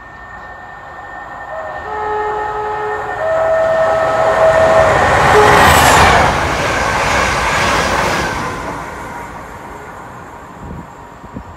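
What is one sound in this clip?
A train roars past close by, growing loud and then fading.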